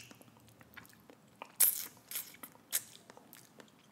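Sauce is shaken from a bottle with soft thuds.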